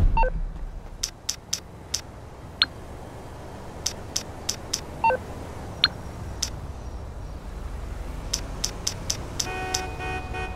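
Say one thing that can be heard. A phone menu clicks repeatedly.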